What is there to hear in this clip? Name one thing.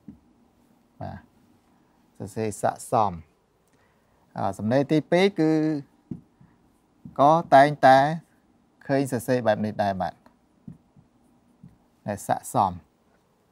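A middle-aged man speaks calmly and clearly into a microphone, in short phrases with pauses.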